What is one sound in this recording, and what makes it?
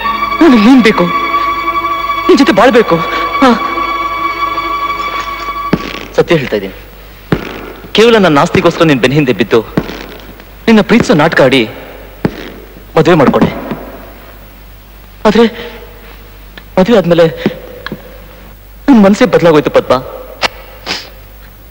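A man speaks tensely in short, loud bursts.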